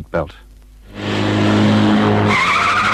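A car engine hums steadily as a car drives past.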